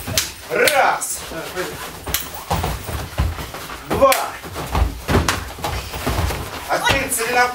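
Bodies and feet thud on padded mats.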